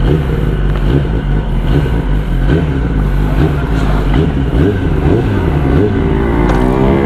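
A motorcycle engine idles with a rough, throbbing rumble.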